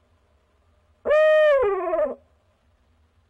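An owl gives a loud, drawn-out call close by that drops in pitch at the end.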